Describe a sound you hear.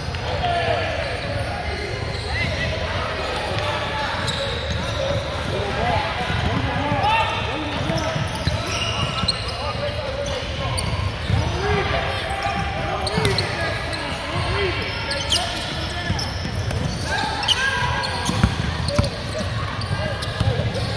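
Young men call out and shout to each other in a large echoing gym.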